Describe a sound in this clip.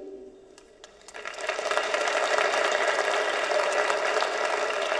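A crowd claps and cheers loudly.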